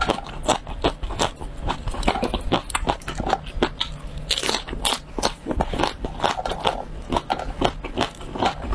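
A young woman chews crunchy food loudly and wetly close to a microphone.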